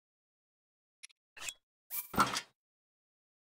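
Menu selection clicks sound in quick succession.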